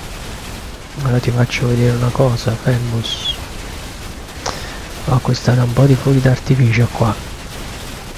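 A man talks casually into a close microphone, in two short bursts.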